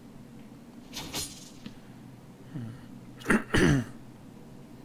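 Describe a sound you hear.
A thrown metal blade clanks against a metal panel.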